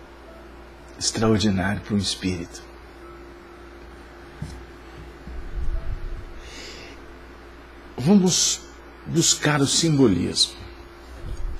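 A middle-aged man speaks with animation into a nearby microphone.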